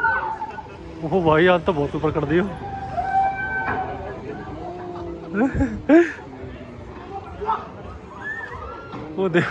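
Riders on a swinging fairground ride scream and shriek.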